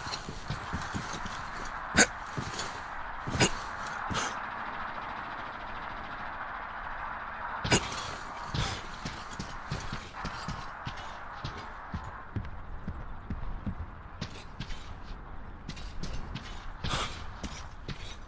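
Footsteps thud on wooden boards and crunch on gravel.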